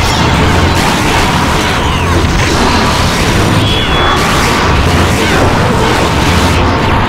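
Rapid blasts and hit effects crash in a fighting game.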